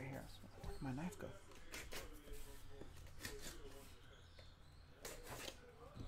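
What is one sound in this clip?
A knife slices through packing tape.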